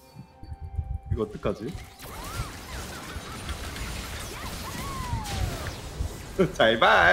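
Magic spells whoosh and crackle in a fantasy game battle.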